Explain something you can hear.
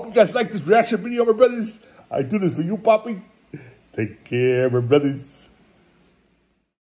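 A middle-aged man talks with animation close to a microphone.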